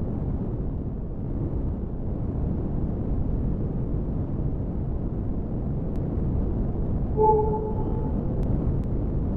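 A spaceship engine rumbles steadily and low.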